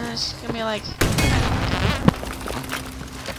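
A rocket explodes with a loud blast.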